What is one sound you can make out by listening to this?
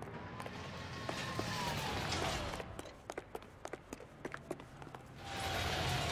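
Quick footsteps tap on pavement.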